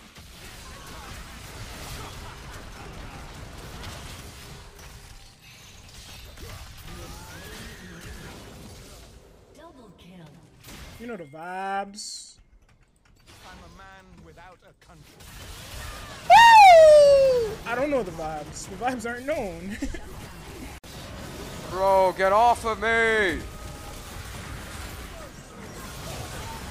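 Spells and weapons clash in a video game fight.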